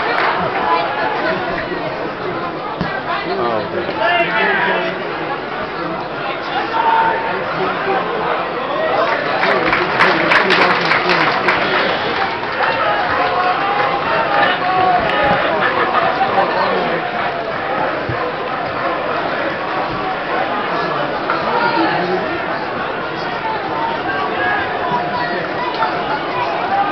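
A large crowd chants and cheers in an open stadium.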